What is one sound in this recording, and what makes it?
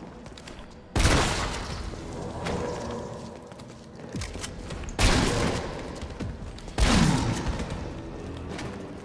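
A grenade launcher fires loud booming shots that echo and fade.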